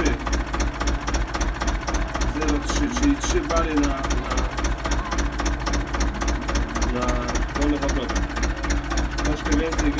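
A tractor's diesel engine idles with a fast, steady chugging rattle.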